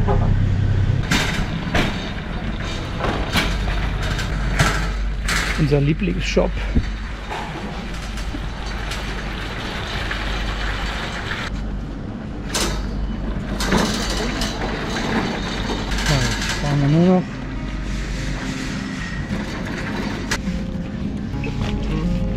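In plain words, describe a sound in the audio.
A shopping trolley rattles as it rolls along.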